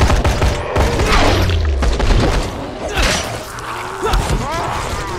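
A zombie growls and groans close by.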